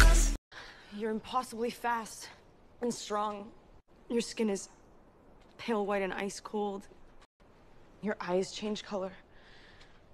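A young woman speaks expressively, close by.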